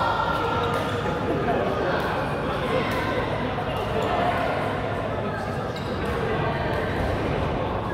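A crowd of people talks and calls out in a large echoing hall.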